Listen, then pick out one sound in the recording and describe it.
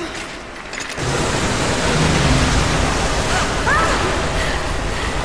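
Rushing water roars loudly.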